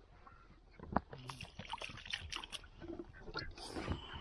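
Water pours from a jug into a pot.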